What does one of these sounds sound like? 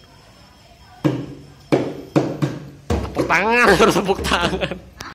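Children beat hand drums in loud, sharp strokes.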